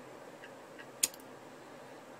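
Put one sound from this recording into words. A lighter clicks as it is struck.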